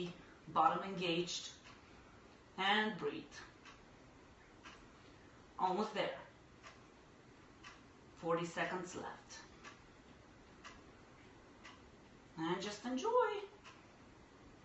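A young woman speaks calmly in short bursts with pauses, close by.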